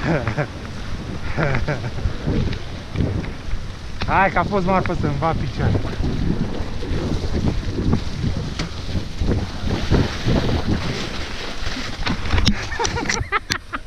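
Mountain bike tyres roll over wet gravel and slushy snow.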